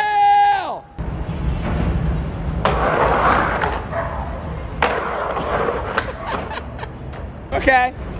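Skateboard wheels roll and rumble across concrete.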